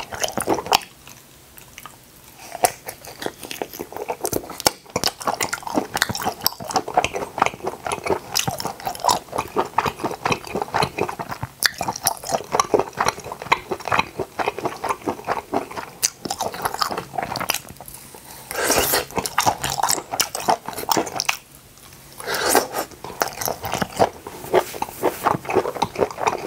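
A man chews food wetly and loudly up close.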